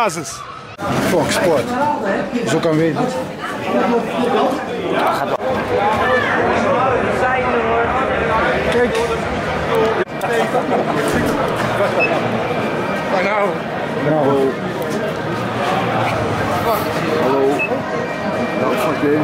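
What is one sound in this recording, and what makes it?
Many men and women chatter close by in a crowd.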